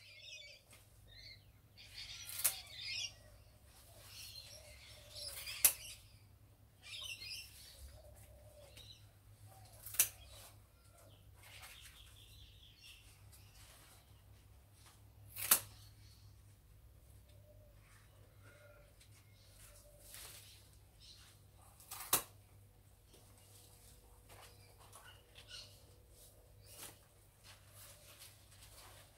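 Leaves rustle and swish as a woman pulls at plants.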